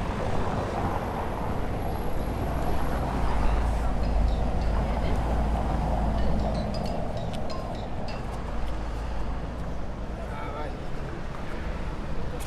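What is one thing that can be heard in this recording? Footsteps tap on stone pavement.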